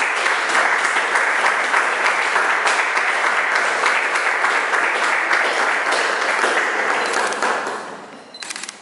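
People applaud in a room.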